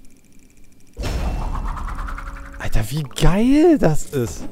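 A game menu plays a rushing whoosh that swells and fades.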